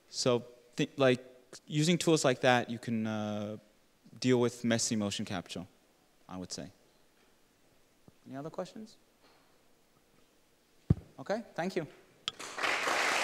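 A man speaks calmly through a microphone in a large hall.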